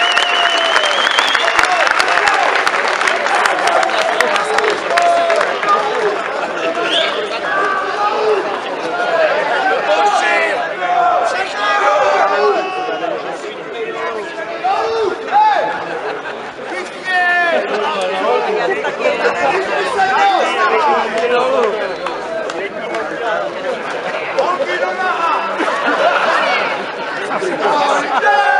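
A large crowd of men and women chants and sings loudly outdoors.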